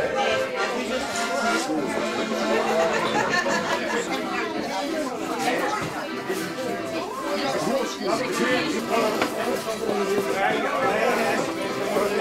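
A crowd of adults chatters throughout a room.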